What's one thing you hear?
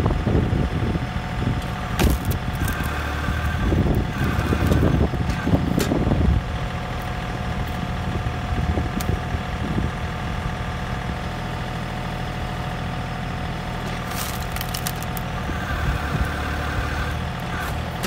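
A log splitter's hydraulics whine as the wedge pushes down.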